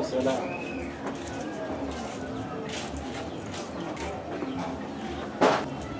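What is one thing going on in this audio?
Footsteps scuff on hard ground.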